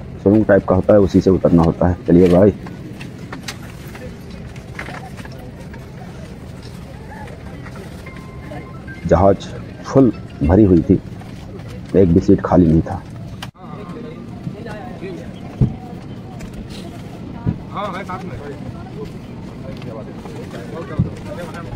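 Passengers murmur and chatter in the background.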